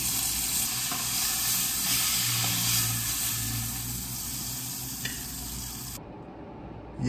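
Meat sizzles and hisses in a hot frying pan.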